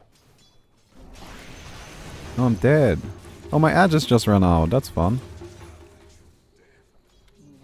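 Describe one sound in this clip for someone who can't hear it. Magic spells crackle and boom in a fight.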